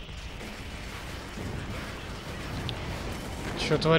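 Weapons fire and explosions thud in a battle.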